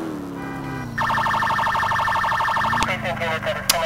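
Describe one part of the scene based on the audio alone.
A police siren whoops in a rapid, pulsing wail.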